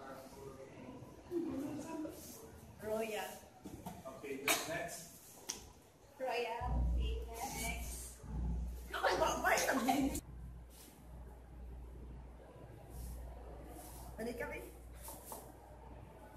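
Young women laugh and talk excitedly close by.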